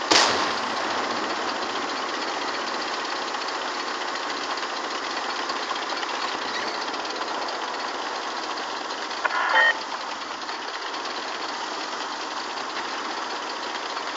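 Tank tracks clatter and grind over the ground.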